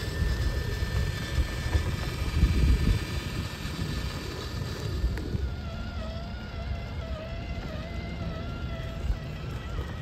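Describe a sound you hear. A small electric motor whines as a toy truck drives.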